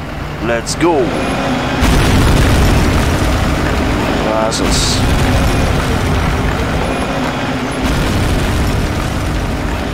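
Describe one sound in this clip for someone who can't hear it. A tracked vehicle clanks and rumbles as it rolls past.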